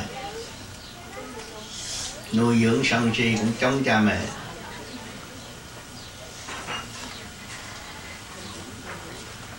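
An elderly man speaks slowly into a microphone.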